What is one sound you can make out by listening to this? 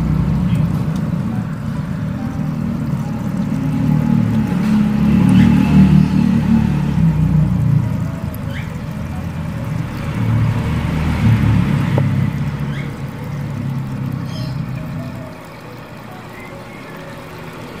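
Water laps softly as a hand stirs floating plants.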